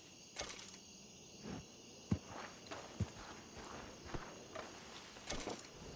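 A heavy animal hide thumps onto a horse's back.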